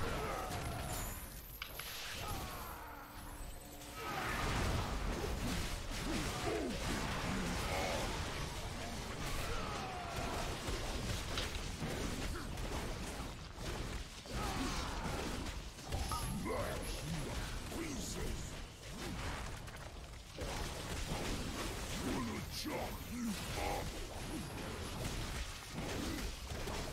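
Magic blasts and weapon strikes crash and clang in a fierce battle.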